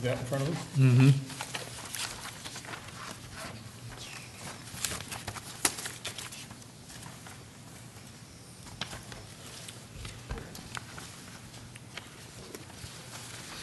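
Papers rustle on a table.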